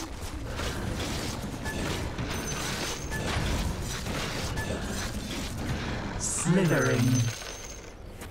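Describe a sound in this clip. Game combat sounds of weapon strikes and spell effects clash in a fight.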